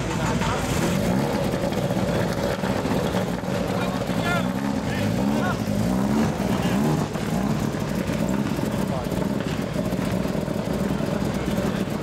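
A rally car engine revs up and pulls away.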